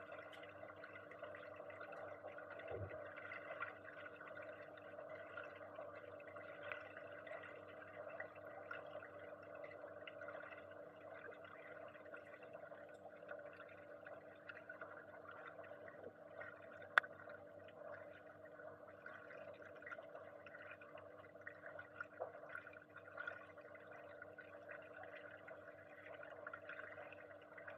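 A diver breathes through a regulator underwater.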